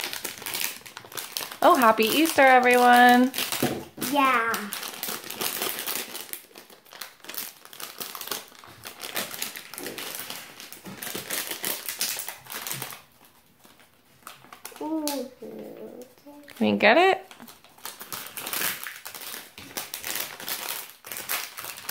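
Plastic wrapping crinkles and rustles in small hands.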